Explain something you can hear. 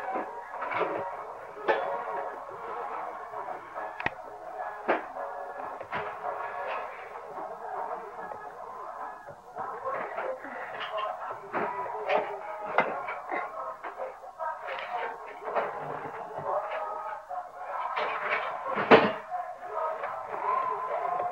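A plastic pull toy clicks and clatters along the floor.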